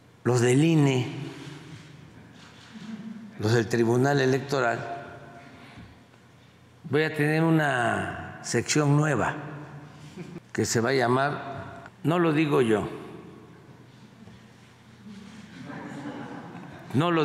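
An elderly man speaks calmly and deliberately into a microphone, with pauses between phrases.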